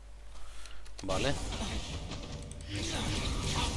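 A magic spell whooshes and crackles as it is cast.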